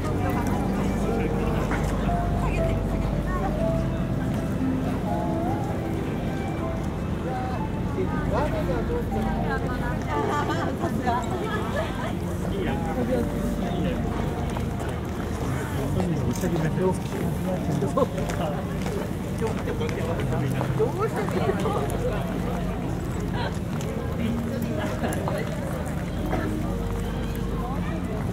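A crowd of people chatters all around outdoors.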